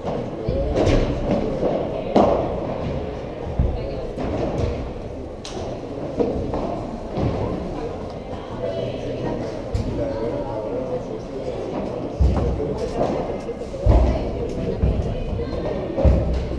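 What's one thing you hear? Rackets strike a ball with sharp pops.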